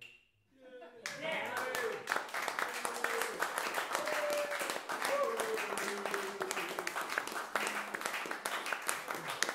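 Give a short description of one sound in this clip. An audience applauds close by.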